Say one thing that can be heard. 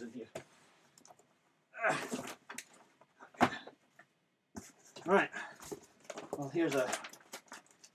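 Paper and magazines rustle and slap as they are handled.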